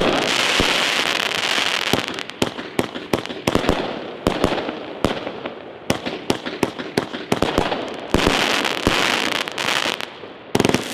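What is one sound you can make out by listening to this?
Fireworks crackle and fizz as sparks spread.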